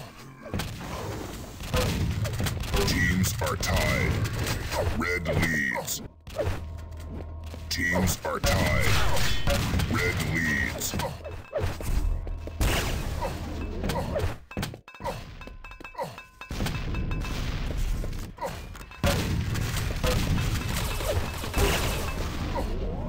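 Gunshots and explosions from a shooting game crack and boom.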